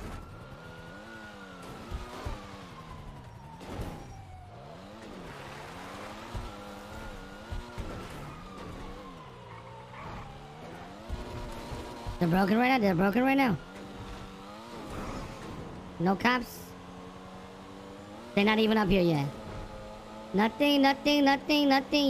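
A sports car engine revs up and down through the gears.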